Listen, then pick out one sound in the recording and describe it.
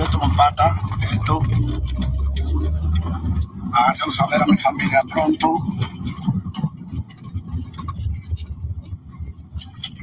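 A young man talks with animation close to a phone microphone.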